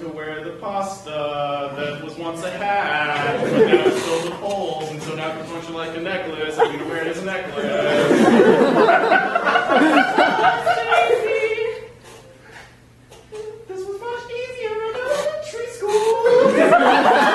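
A young man speaks with animation in a large hall.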